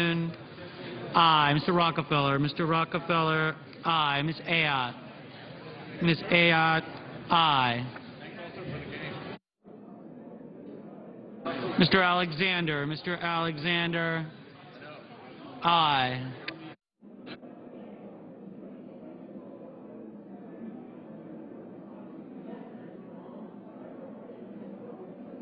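A crowd of men and women murmur and chat quietly in a large hall.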